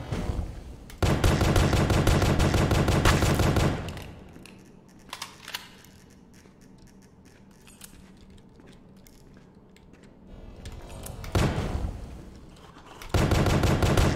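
A shotgun fires loud blasts in rapid succession.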